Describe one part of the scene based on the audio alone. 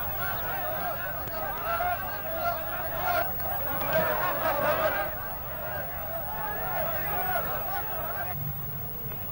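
A crowd of men talks and shouts excitedly nearby.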